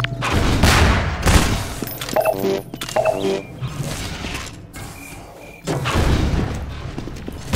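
Gunfire rings out in loud bursts.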